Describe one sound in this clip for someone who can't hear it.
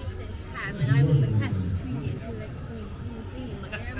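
A man and women talk nearby outdoors.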